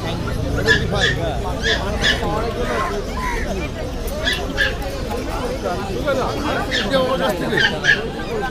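Puppies yap in short high barks.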